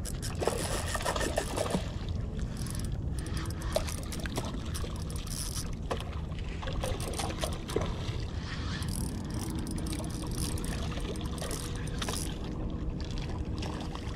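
A fish splashes at the surface of the water.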